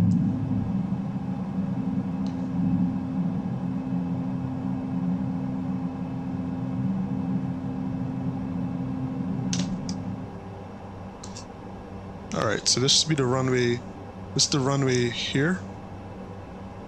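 An airplane's engines drone steadily from inside the cabin, then grow quieter.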